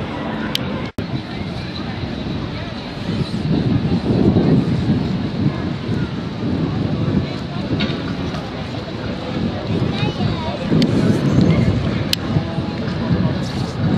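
Music with a heavy beat plays loudly over loudspeakers outdoors.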